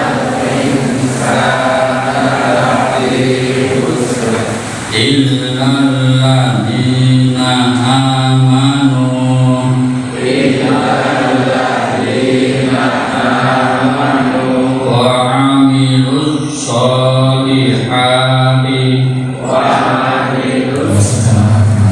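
An older man speaks steadily through a microphone and loudspeaker in an echoing hall.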